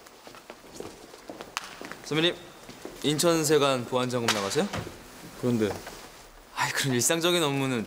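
A jacket rustles as a man puts it on.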